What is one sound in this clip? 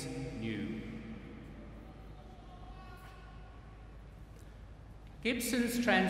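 A man chants into a microphone, echoing through a large hall.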